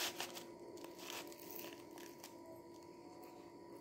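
A paper wrapper crinkles in a young man's hands.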